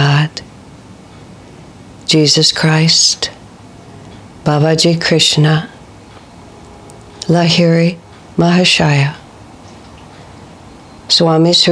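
An older woman chants slowly and softly in short phrases with pauses between them.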